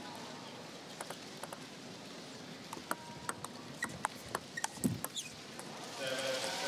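A table tennis ball clicks sharply against paddles and the table in a quick rally.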